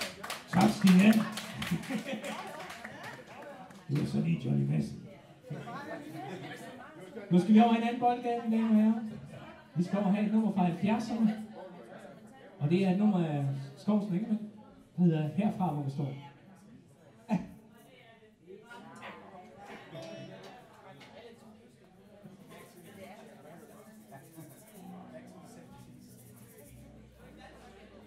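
Drums are played in an echoing room.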